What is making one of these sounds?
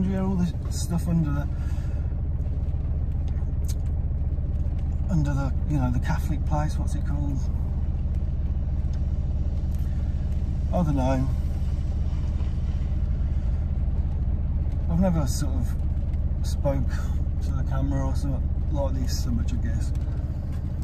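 A car engine hums steadily inside the car.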